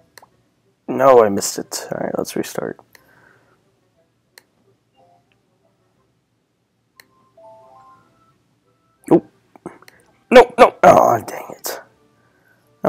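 A cartoon creature munches and gulps noisily.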